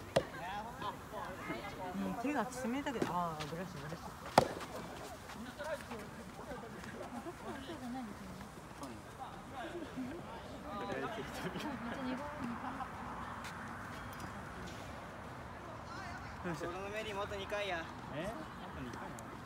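Several young men and women talk and call out across an open outdoor court.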